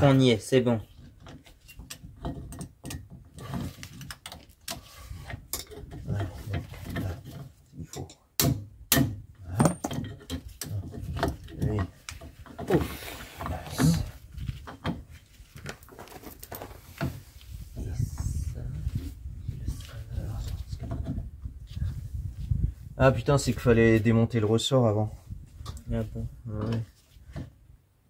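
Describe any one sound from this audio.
Metal parts clink and click.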